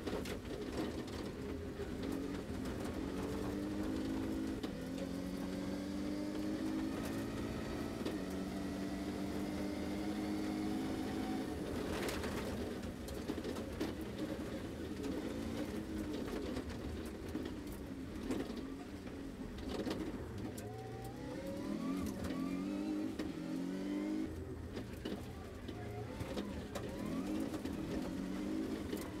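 Gravel and stones rattle against the underside of a car.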